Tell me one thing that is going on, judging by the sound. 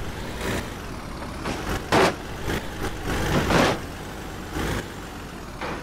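Truck tyres thump over a speed bump.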